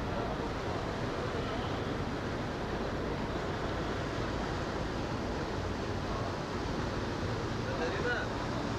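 A ship's wake churns and splashes on water.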